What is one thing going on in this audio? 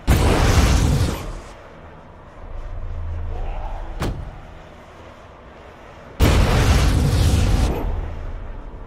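Flames burst with a loud roar.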